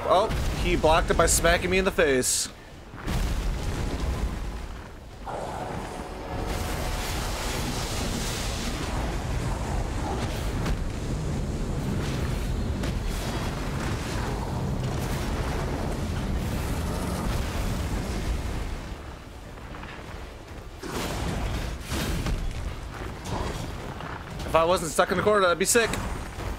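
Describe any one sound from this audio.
Heavy weapons clash and thud in a fight.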